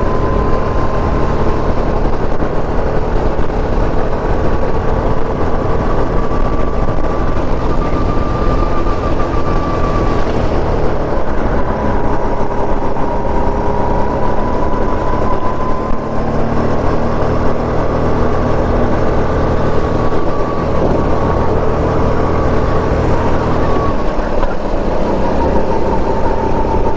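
Wind rumbles past the open kart.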